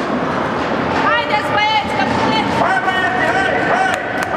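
Young children shout to each other in a large echoing rink.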